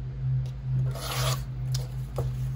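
A paper trimmer blade slides and cuts through paper with a brief rasp.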